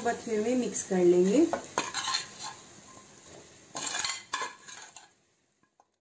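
Potato slices drop into a pan.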